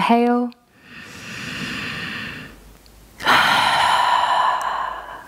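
A young woman breathes in and out deeply.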